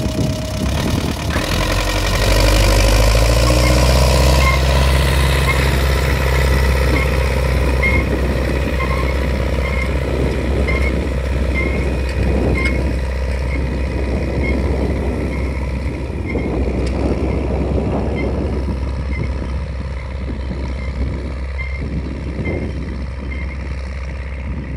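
A tractor engine rumbles steadily as it drives past and moves away.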